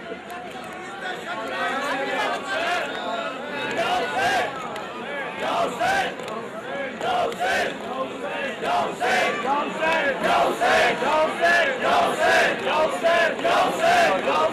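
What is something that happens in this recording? A man chants loudly in a mournful, rhythmic voice before a large crowd.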